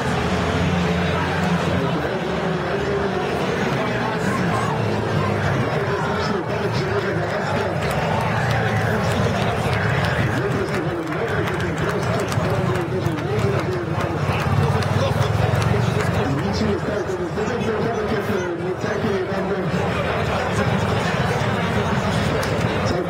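A crowd of spectators murmurs and chatters outdoors.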